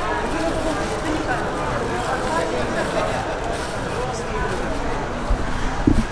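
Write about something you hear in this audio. Plastic wrap crinkles.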